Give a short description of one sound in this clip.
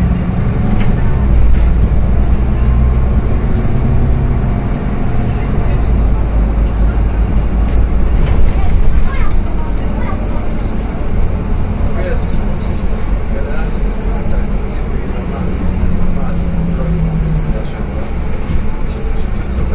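The bus body rattles and creaks over the road.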